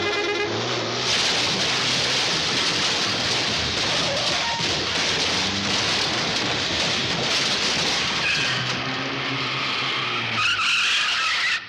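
Wooden scaffolding crashes and splinters as a car smashes through it.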